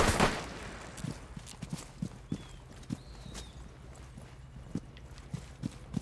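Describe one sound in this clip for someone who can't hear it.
Footsteps thud quickly on grass and paving.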